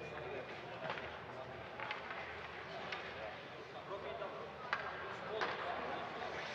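Hockey sticks tap on the ice.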